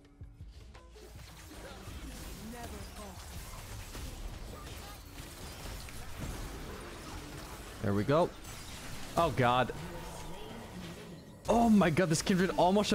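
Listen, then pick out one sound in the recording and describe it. Magic blasts and clashing effects from a fast battle game crackle and whoosh.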